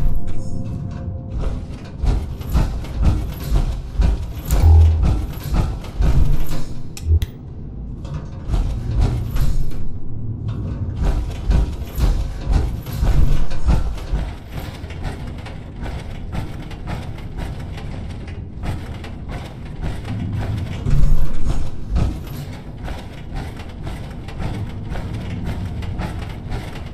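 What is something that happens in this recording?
Heavy metal footsteps clank and thud on hard floors and metal grates.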